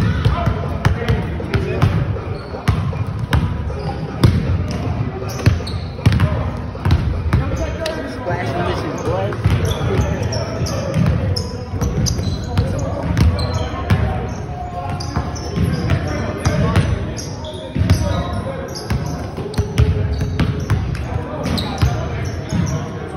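Basketballs bounce on a wooden floor, echoing in a large hall.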